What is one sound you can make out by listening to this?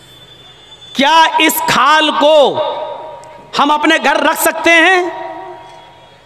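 A man preaches loudly and passionately into a microphone, heard through loudspeakers with echo.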